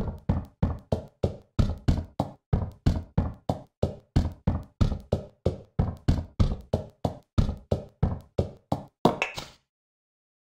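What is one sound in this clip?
A pickaxe strikes a block in quick repeated taps.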